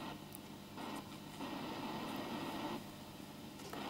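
A small electrical relay hums.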